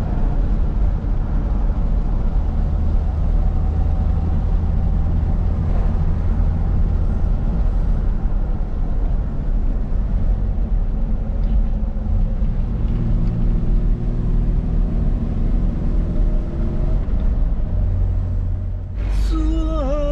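A car engine drones while driving, heard from inside the cab.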